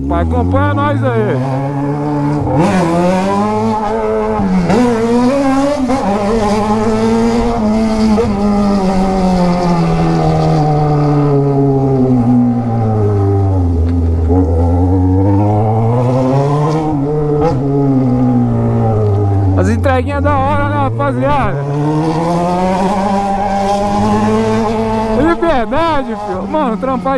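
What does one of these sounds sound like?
A motorcycle engine hums steadily, rising and falling in pitch as the rider speeds up and slows down.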